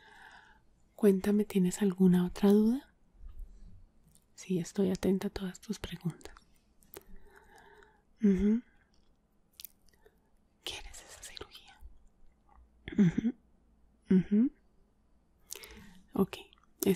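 A woman speaks softly and closely into a microphone, in short bursts with pauses.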